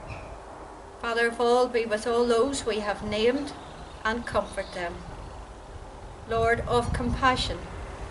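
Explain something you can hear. A middle-aged woman reads out calmly and slowly.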